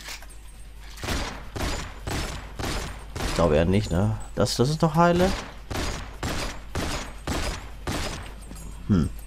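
A pistol fires repeated sharp shots.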